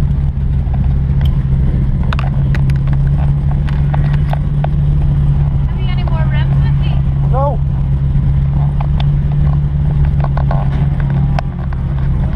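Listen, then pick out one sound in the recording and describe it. A drift car's engine idles, heard from inside the car.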